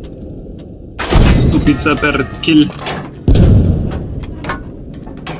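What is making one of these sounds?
A heavy shell explodes with a loud, rumbling boom.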